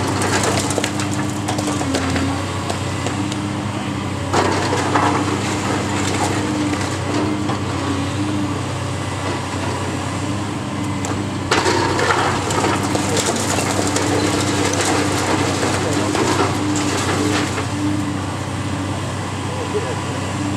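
Concrete and brick crack and crash down as a demolition claw tears at a wall.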